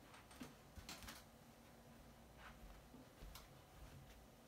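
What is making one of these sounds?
Footsteps thud softly on carpet.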